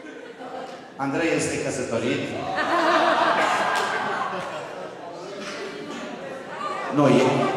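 A man speaks loudly into a microphone through loudspeakers.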